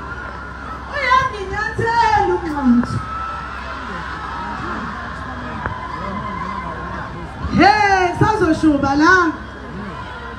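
A man talks loudly close by.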